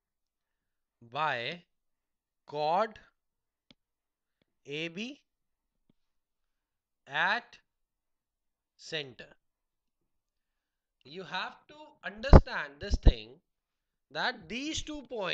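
A man speaks slowly and clearly, close to a clip-on microphone, in short phrases.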